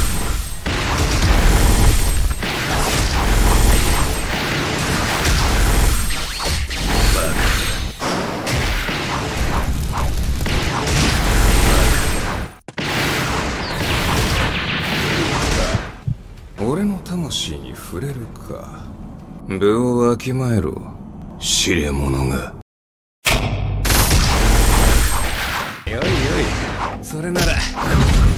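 Loud game fight effects whoosh and crash with heavy booms.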